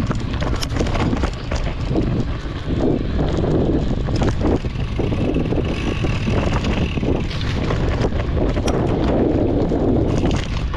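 Wind rumbles against a moving rider.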